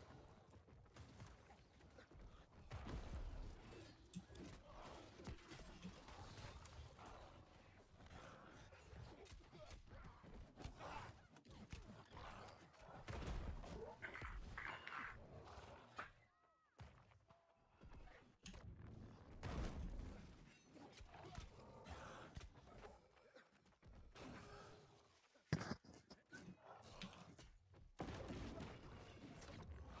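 Weapons clash and thud in a fast fight.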